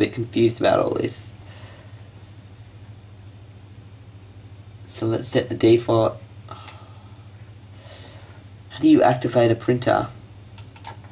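A man speaks calmly and close to a microphone, in short bursts with pauses.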